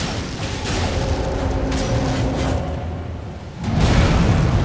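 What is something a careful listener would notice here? Flames roar in a fiery blast.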